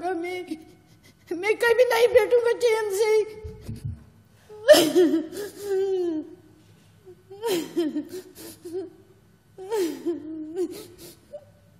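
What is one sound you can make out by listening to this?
A woman speaks emotionally into a microphone, her voice breaking with sobs.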